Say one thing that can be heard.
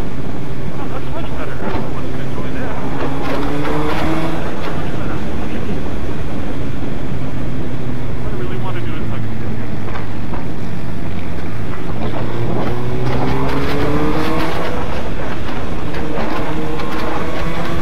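A motorcycle engine hums steadily up close and rises in pitch as it revs.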